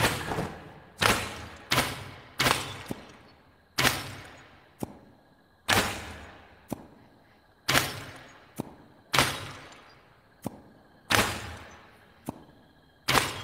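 Darts thud sharply into wooden targets, one after another.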